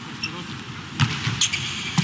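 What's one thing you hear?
A volleyball is served with a sharp smack.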